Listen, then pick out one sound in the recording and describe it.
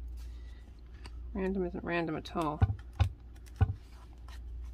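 Fingers press and tap chipboard pieces onto paper.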